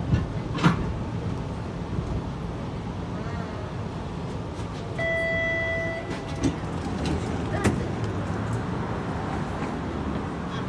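A vehicle rumbles low and steady while moving.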